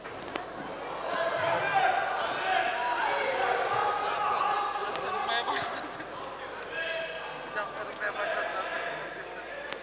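A crowd murmurs and cheers.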